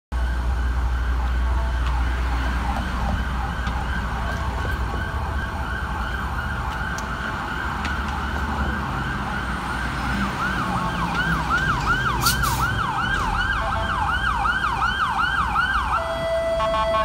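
A siren wails, rising and falling fast as it draws closer.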